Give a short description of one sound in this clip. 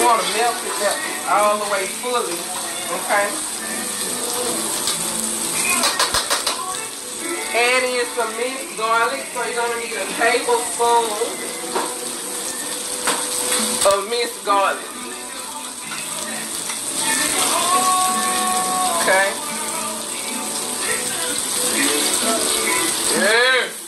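A spoon scrapes and stirs in a pan.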